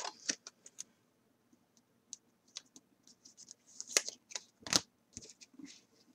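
A plastic card sleeve crinkles and clicks as hands handle it.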